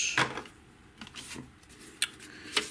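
A sheet of paper rustles.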